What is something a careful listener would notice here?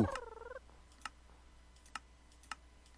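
Soft game menu clicks sound as pages turn.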